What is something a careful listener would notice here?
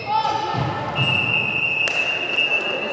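Sneakers squeak on a wooden floor as players run.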